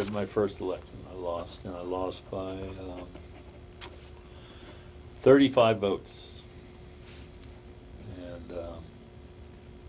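A middle-aged man speaks calmly and haltingly, close by.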